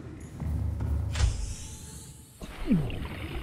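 Water rushes and rumbles around a small submarine moving underwater.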